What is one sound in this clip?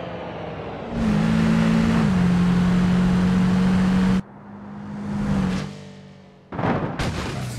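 A car engine revs as it speeds along a road.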